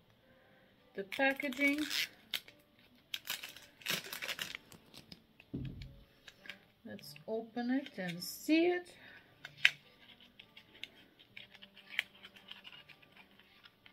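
Plastic packaging crinkles and rustles in a woman's hands.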